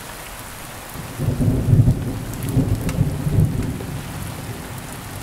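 Thunder rumbles deeply outdoors, rolling and then fading.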